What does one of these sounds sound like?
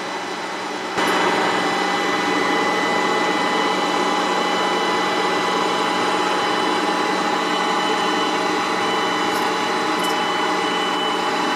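A machine's motor hums steadily as its platform slowly lowers.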